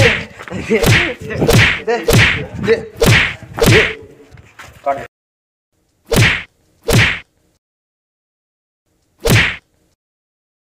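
Loud punches and slaps land in quick succession.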